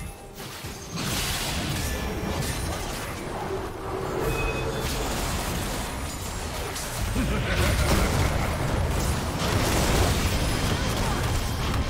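Magical blasts and crackling spell effects clash in a hectic fight.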